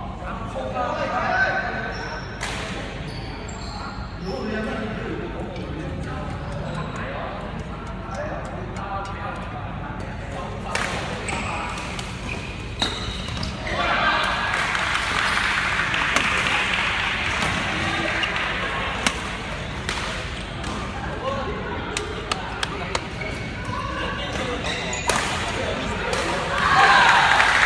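Shuttlecocks pop sharply off racquets in a large echoing hall.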